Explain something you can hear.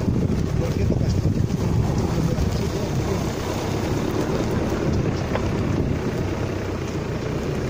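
Branches and bushes scrape and swish against a car.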